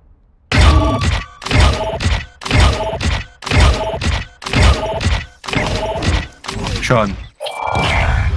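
A game interface plays a short sound effect each time a score is added.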